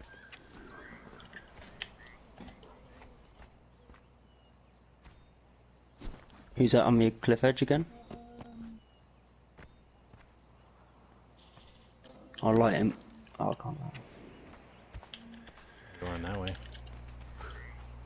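Footsteps thud softly on sand.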